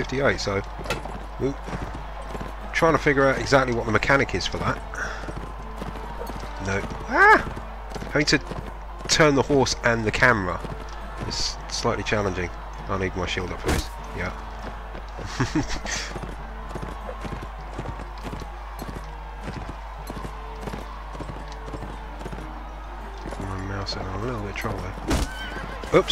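Horse hooves pound steadily on soft ground.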